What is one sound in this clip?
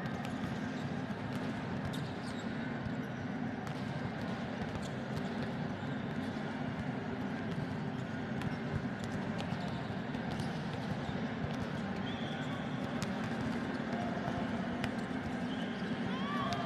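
A volleyball is struck with sharp slaps in a large echoing hall.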